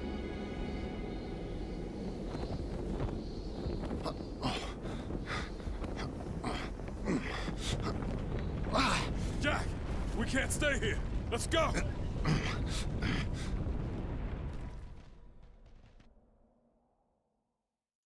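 A deep rumble fills an echoing space and fades away.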